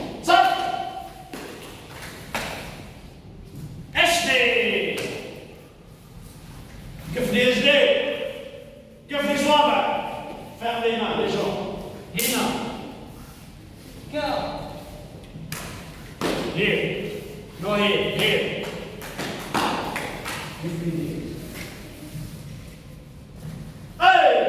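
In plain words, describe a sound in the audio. Children shout loudly in unison in a large echoing hall.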